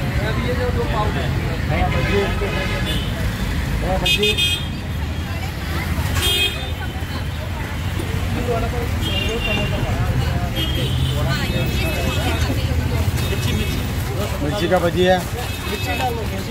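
Traffic hums and rumbles steadily in the background.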